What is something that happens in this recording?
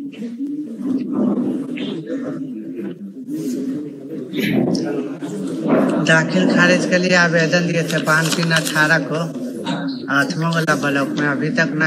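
An elderly man reads out aloud into a microphone.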